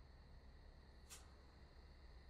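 A lighter clicks once.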